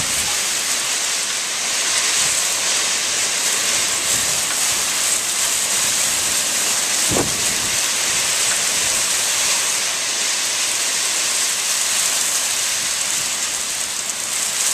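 Rain drums on a car's roof and windows.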